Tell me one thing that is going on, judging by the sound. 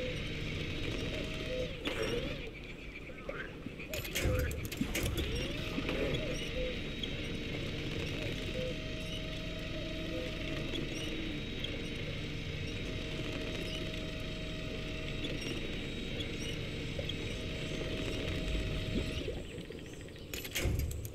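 A bus engine rumbles and strains through mud.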